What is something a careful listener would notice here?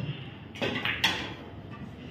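Pool balls clack against each other.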